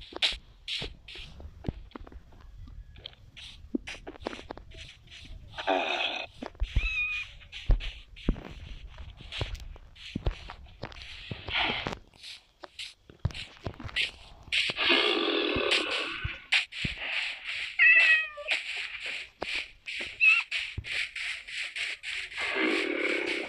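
Footsteps thud steadily on grass.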